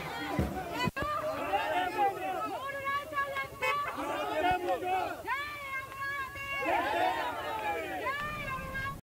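A middle-aged woman shouts slogans to a crowd.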